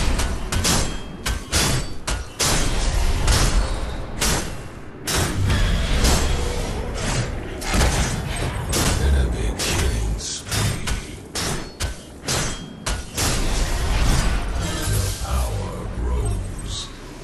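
Game weapons fire and strike in rapid bursts with heavy thuds.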